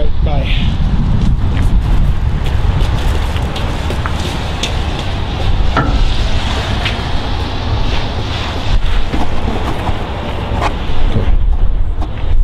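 Wind rumbles and buffets loudly outdoors.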